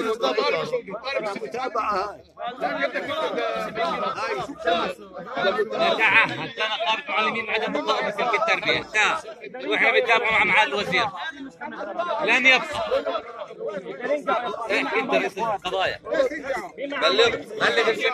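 A middle-aged man speaks loudly and heatedly close by.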